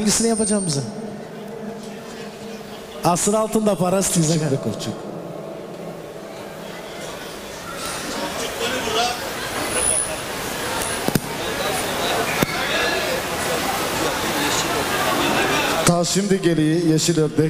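A man's voice rings out through a microphone and loudspeakers in an echoing hall.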